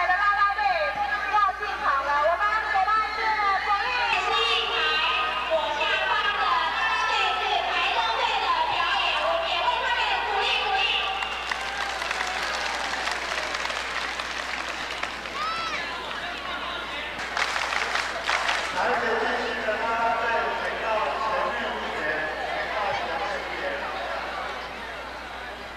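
A crowd of young women and girls chatters and calls out loudly outdoors.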